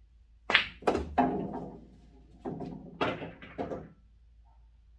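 Billiard balls clack against each other and knock against the cushions of a table.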